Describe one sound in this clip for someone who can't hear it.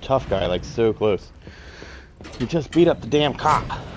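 A metal lift gate rattles as it slides open.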